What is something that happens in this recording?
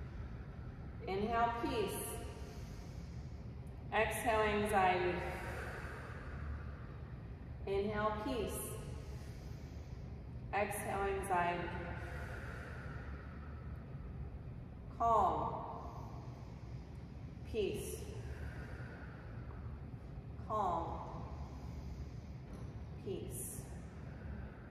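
A woman sings short phrases in an echoing room.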